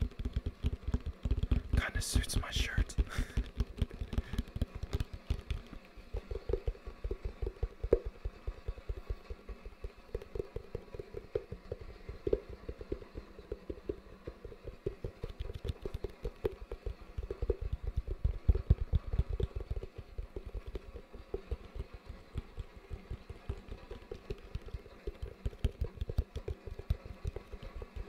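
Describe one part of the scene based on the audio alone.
Fingers tap and scratch rapidly on a hollow plastic bucket close to the microphone.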